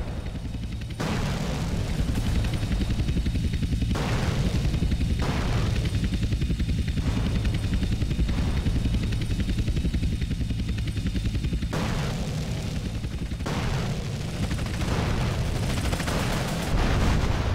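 Explosions boom in bursts.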